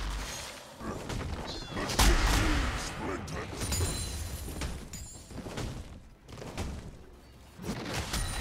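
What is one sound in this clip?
Magic blasts and weapon hits burst and clash in a fast video game battle.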